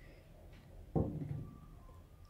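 A spool of yarn is set down with a soft thud.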